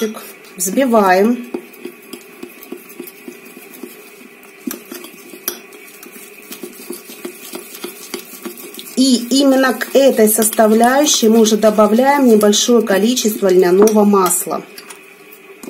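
A fork scrapes and clinks against a ceramic bowl while stirring.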